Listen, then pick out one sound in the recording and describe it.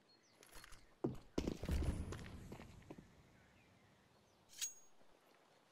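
A weapon is handled with metallic clicks.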